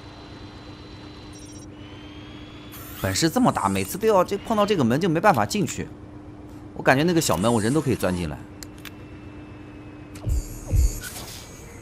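A small robot's electric motor whirs as it rolls.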